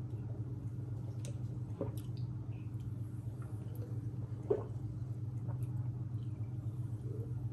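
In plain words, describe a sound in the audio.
A young woman gulps a fizzy drink close to a microphone.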